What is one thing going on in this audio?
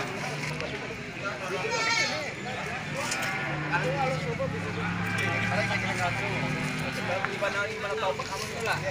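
A goat bleats nearby.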